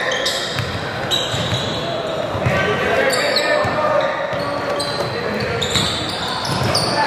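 Players and spectators call out in a large echoing gym.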